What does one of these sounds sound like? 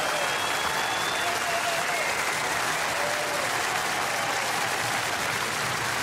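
Voices in the crowd cheer and whistle.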